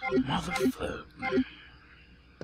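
Short electronic menu beeps chime in quick succession.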